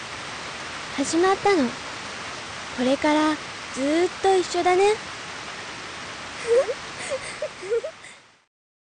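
A young girl speaks softly and gently.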